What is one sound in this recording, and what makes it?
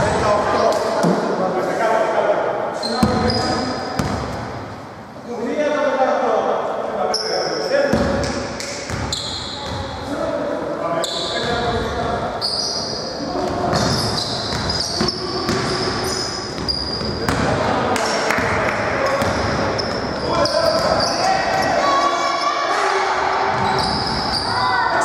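Men shout to each other in an echoing hall.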